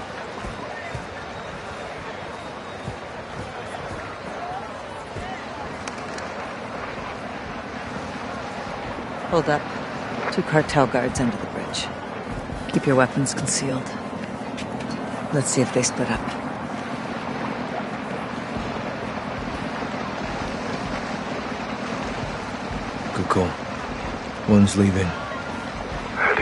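A crowd murmurs in the street in the background.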